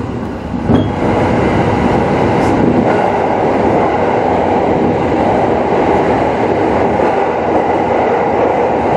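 A train's rumble grows louder and echoes as it enters a tunnel.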